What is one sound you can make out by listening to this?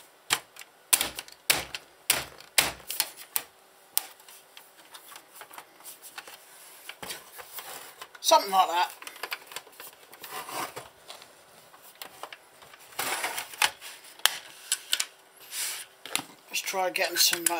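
Plastic parts click and knock as a console is taken apart by hand.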